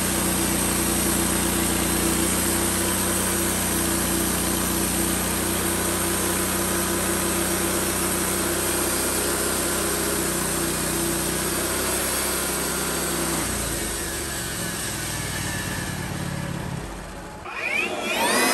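A portable band sawmill cuts through a log.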